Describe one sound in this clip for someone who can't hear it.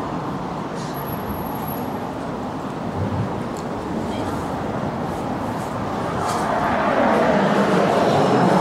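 Traffic rumbles steadily along a city street outdoors.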